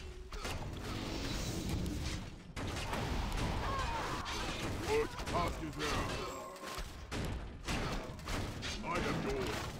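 Magic spells crackle and blast during a fight.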